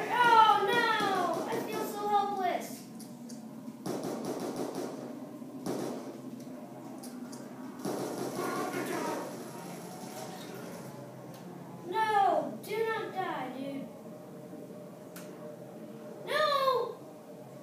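Gunfire from a video game rings out through television speakers.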